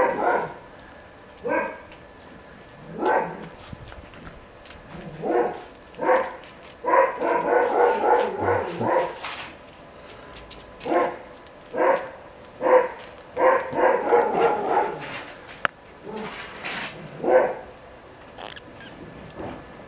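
Large animals pad softly across a hard floor.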